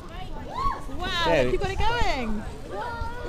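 A young child squeals excitedly.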